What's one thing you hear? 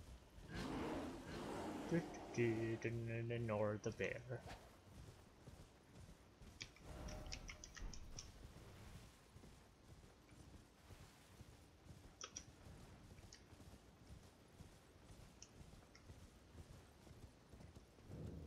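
A horse gallops, its hooves thudding on soft ground.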